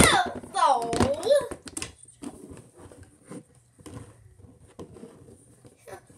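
Small plastic toy pieces click and tap.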